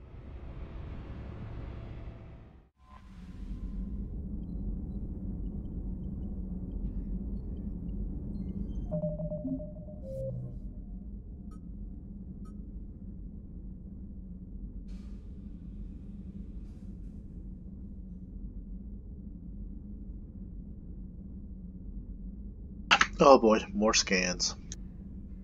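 A spaceship's engines hum low and steady.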